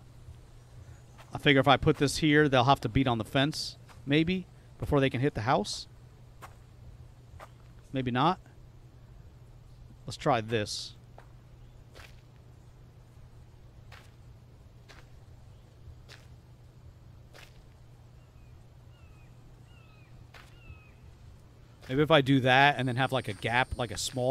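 Footsteps tread softly over grass and dirt.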